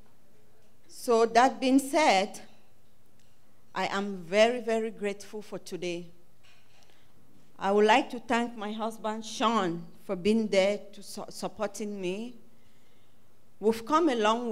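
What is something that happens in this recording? A young woman speaks calmly through a microphone in a large room.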